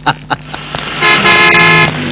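A car horn honks in a steady blare.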